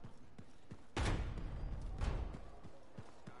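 A heavy door rumbles open.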